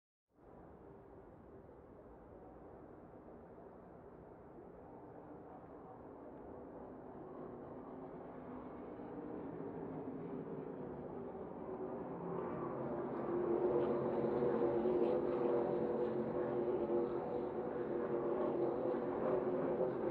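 A race truck engine roars loudly up close, its pitch rising and falling through gear changes.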